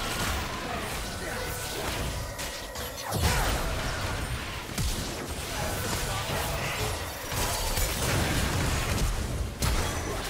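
Video game spells zap and whoosh in quick bursts.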